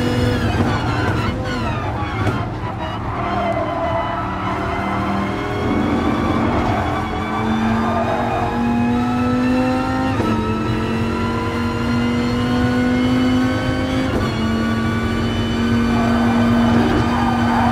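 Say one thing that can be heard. A racing car engine revs high, dropping in pitch at each gear change.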